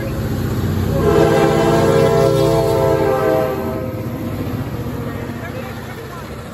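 A diesel locomotive engine rumbles heavily as it passes.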